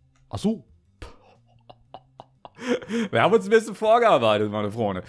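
A young man speaks excitedly, close to a microphone.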